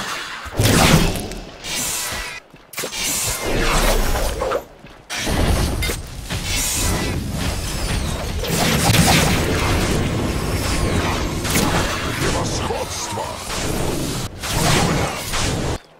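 Blades clash and strike in quick hits.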